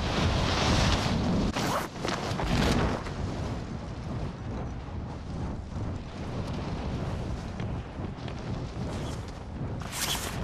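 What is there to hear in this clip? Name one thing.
Wind rushes loudly past during a fast fall through the air, then eases to a steady roar.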